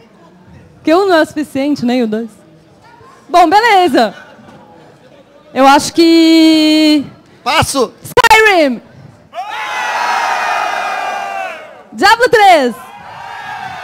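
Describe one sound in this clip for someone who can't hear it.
A young woman shouts excitedly into a microphone over loudspeakers.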